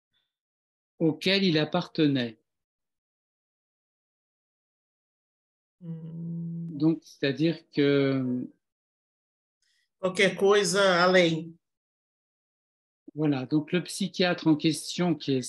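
A woman speaks with animation over an online call, in short bursts with pauses.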